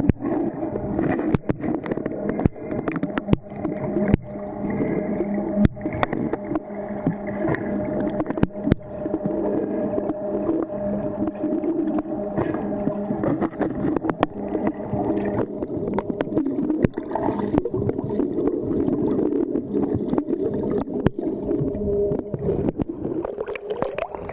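Water sloshes and bubbles, heard muffled underwater.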